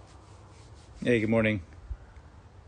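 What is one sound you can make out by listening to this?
A middle-aged man speaks briefly and close by.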